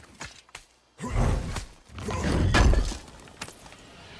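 A heavy chest bursts open with a deep rumbling whoosh.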